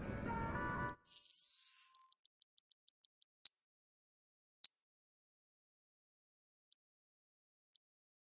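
Quick electronic menu blips tick in a rapid run, then a few single blips follow.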